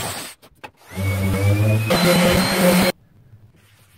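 An electric sander buzzes loudly.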